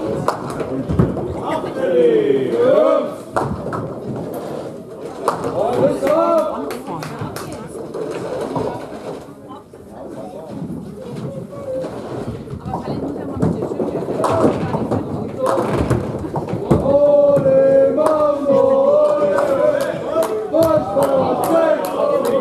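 Pins clatter as they are knocked down.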